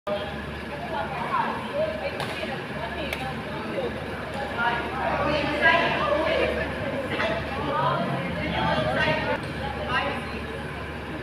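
Young men talk and call out nearby.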